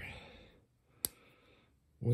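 A metal multitool clicks shut.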